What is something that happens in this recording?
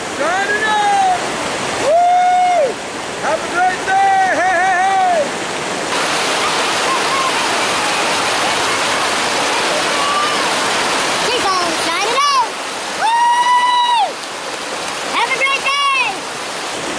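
A man whoops and shouts loudly nearby.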